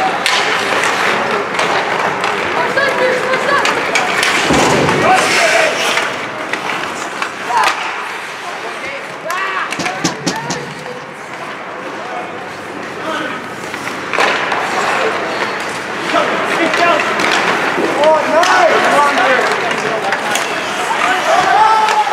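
Spectators shout and cheer in an echoing arena.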